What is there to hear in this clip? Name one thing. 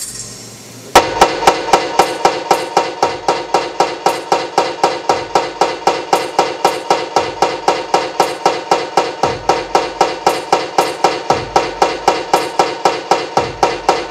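A fast, steady electronic pulse repeats over and over.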